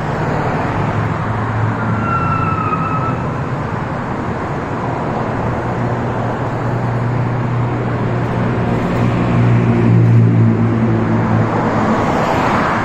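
A car engine hums low as it drives by.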